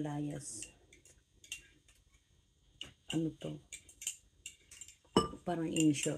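A spoon clinks against a mug.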